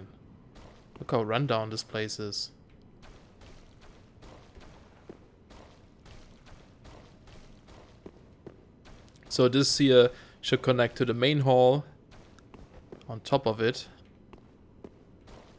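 Footsteps tread slowly on stone.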